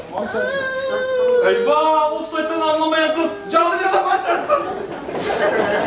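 Young men shout and sing loudly in an echoing hall.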